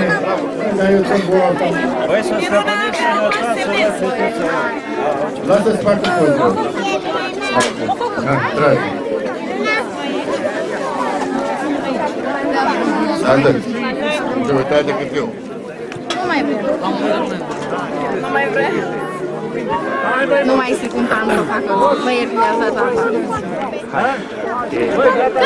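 A crowd of children chatters in the background.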